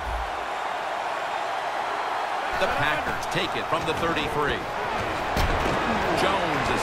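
A large crowd cheers steadily in a stadium.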